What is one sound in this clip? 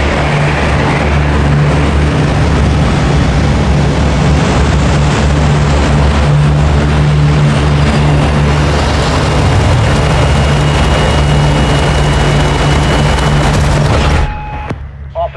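Propeller engines of a large aircraft drone loudly and steadily.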